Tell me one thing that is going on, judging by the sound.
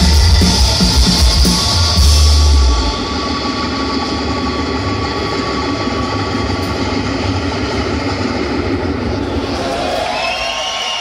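A band plays loud live music with deep, heavy bass in a large echoing hall.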